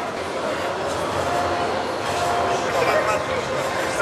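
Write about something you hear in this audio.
A crowd of men chatters in a busy room.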